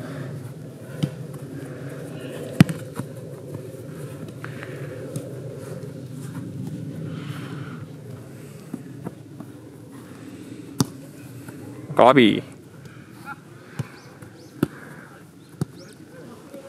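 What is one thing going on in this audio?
A ball is kicked with sharp thuds.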